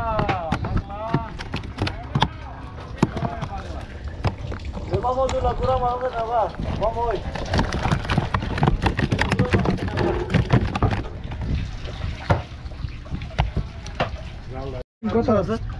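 Fish flop and slap against a plastic crate.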